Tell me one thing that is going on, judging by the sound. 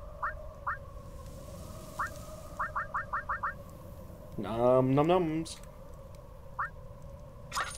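Short rising electronic blips sound in quick succession.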